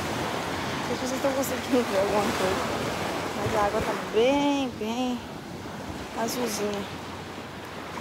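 A young woman speaks close by, casually.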